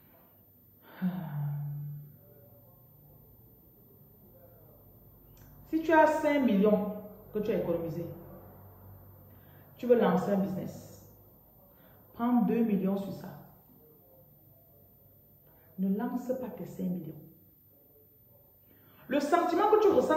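A middle-aged woman speaks close to a phone microphone, in short bursts with pauses.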